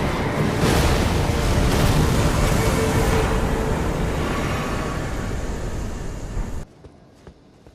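A loud rushing, shimmering burst roars and then cuts off.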